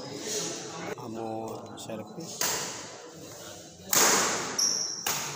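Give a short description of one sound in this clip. Rackets hit a shuttlecock back and forth in an echoing hall.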